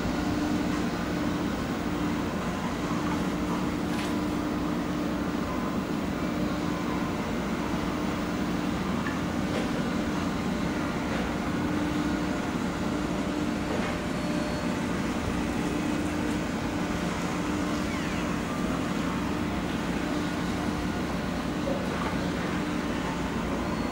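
A boat engine hums steadily nearby.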